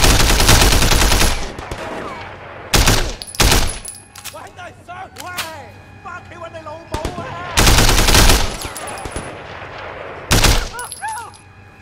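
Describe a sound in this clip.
A rifle fires loud bursts of gunshots.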